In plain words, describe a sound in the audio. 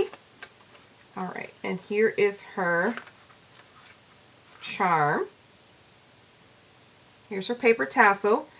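Paper crinkles softly as it is handled.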